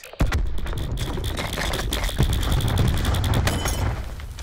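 An automatic rifle fires rapidly, close by.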